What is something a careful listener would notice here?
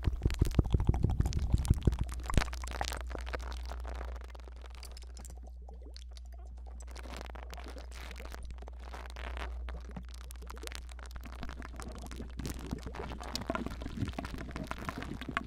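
Close crackling and tapping sounds against a microphone come in quick bursts.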